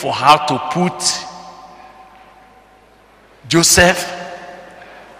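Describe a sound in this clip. An older man speaks with animation into a microphone in a reverberant room.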